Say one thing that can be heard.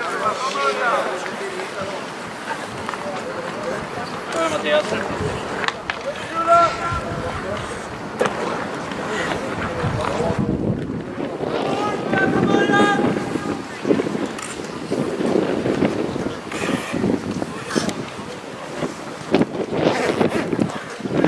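Skates scrape across the ice outdoors.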